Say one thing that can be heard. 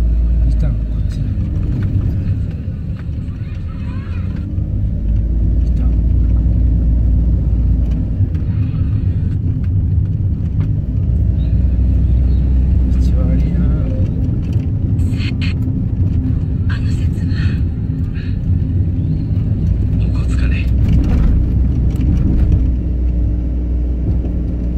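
Tyres rumble on rough asphalt.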